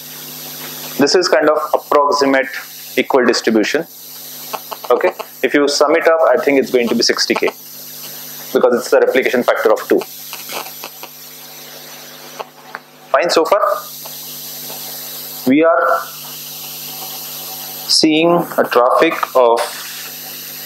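A man speaks calmly, presenting to a room.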